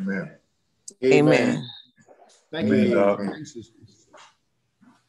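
A man speaks warmly over an online call.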